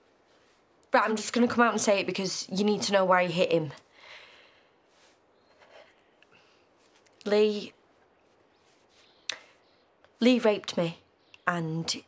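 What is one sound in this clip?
A young woman speaks in short, tense phrases close by.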